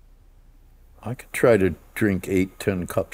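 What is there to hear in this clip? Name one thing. An elderly man speaks in a low, relaxed voice up close.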